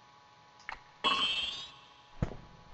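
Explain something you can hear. A shimmering chime rings as an item is used.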